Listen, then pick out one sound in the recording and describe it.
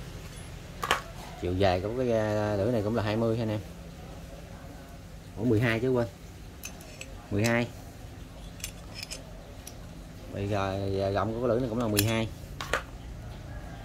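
Metal tools click and clink as they are handled.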